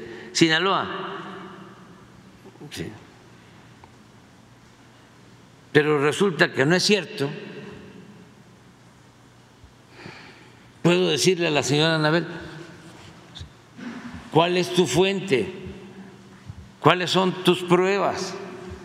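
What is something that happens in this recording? An elderly man speaks calmly into a microphone in an echoing room, with long pauses.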